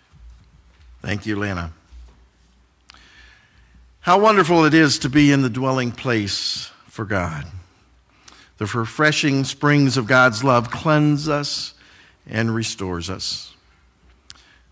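A man speaks calmly into a microphone in an echoing room.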